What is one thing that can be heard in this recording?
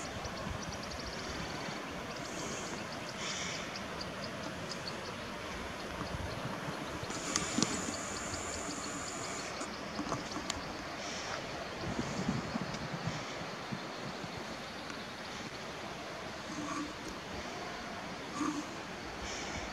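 Wind blows steadily across an open hillside, rustling leaves.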